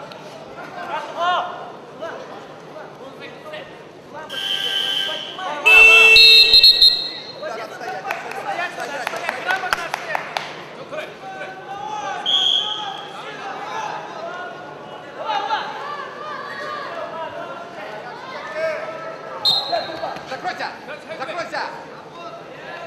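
A large crowd murmurs and shouts in a big echoing arena.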